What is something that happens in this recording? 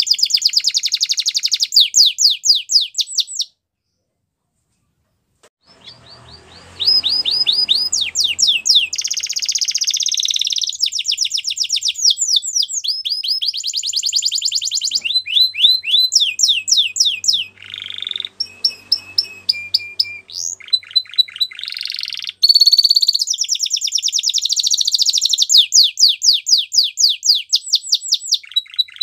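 A canary sings loud, rapid trills and chirps close by.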